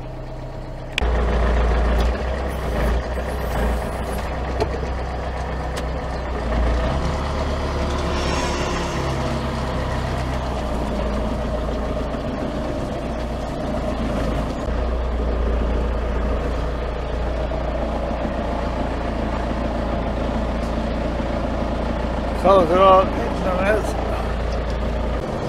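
A large farm machine's engine rumbles steadily from inside the cab.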